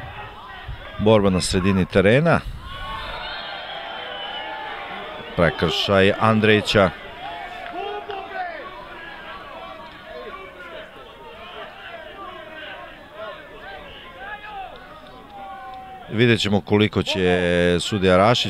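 A crowd of spectators chants loudly in bursts.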